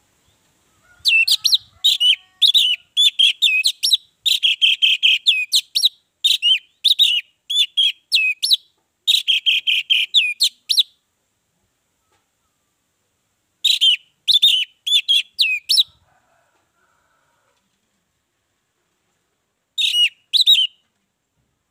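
An orange-headed thrush sings in bursts of loud, varied whistled phrases.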